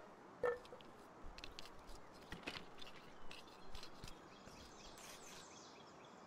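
Light tapping and knocking sounds come from crafting at a workbench.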